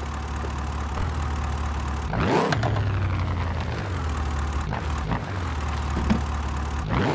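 A car engine roars as it starts, then idles with a deep rumble and revs.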